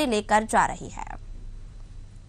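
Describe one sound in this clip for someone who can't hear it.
A man speaks forcefully into a microphone over a loudspeaker.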